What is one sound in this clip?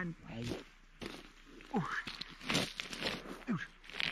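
Footsteps and a body crunch on loose gravel as a man sits down.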